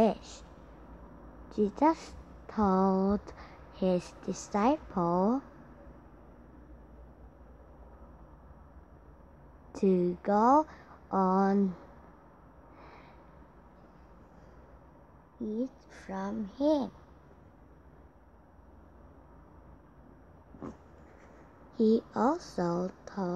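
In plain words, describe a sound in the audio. A young girl speaks in short bursts through an online call.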